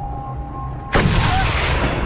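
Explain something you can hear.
A rifle fires a single loud shot that echoes.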